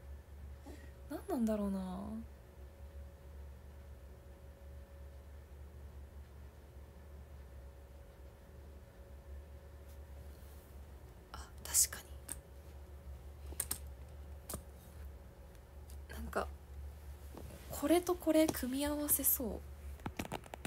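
A young woman speaks softly in short bursts, close by.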